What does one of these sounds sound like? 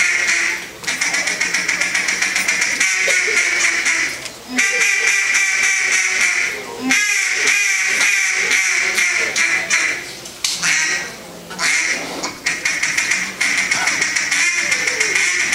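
A man blows a duck call in a fast series of loud, rapid quacks that echo in a large hall.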